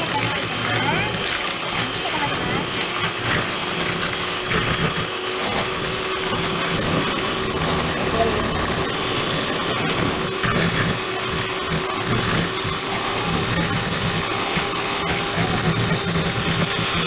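Mixer beaters rattle against a plastic bowl.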